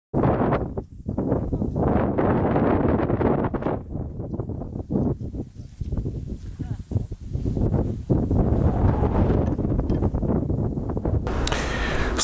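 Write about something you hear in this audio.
Wind blows hard across open ground.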